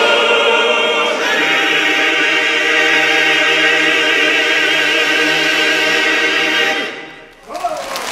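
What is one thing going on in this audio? A men's choir sings together in a large echoing hall.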